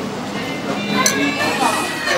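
A metal spoon clinks against a china bowl.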